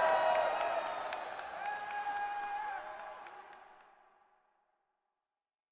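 Upbeat pop music plays loudly, then fades away.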